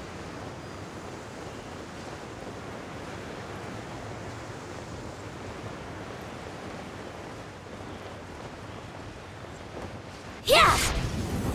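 Wind rushes steadily past a glider in flight.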